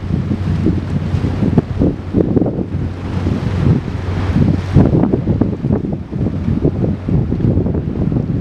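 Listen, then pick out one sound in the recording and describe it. A boat's motor drones steadily in the distance.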